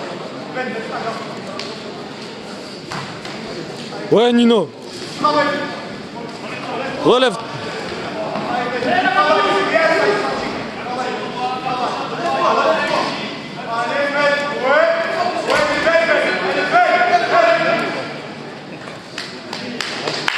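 Spectators shout and cheer in an echoing hall.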